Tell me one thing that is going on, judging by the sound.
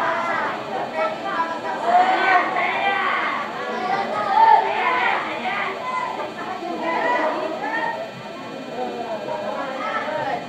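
A crowd of young women chatter together in a large echoing hall.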